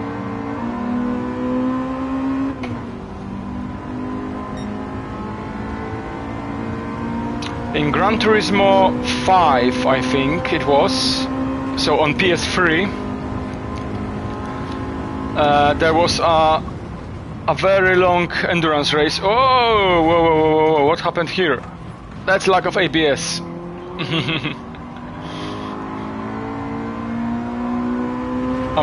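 A racing car engine roars steadily, rising and falling in pitch with gear changes.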